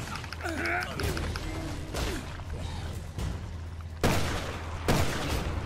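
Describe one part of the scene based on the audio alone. A monster growls and groans.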